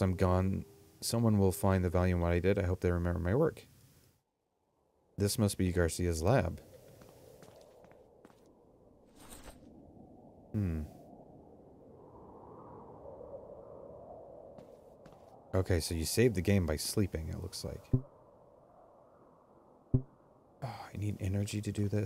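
A man talks calmly and closely into a microphone, in bursts with pauses.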